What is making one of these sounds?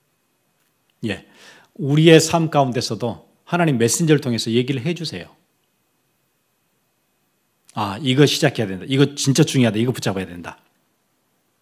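A man speaks with emphasis through a microphone.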